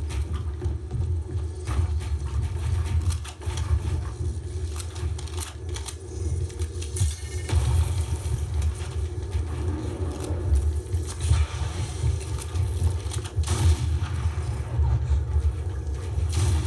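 Video game building sounds clatter and click quickly from a loudspeaker.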